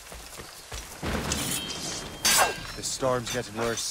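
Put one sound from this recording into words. A blade slashes and strikes a man in a fight.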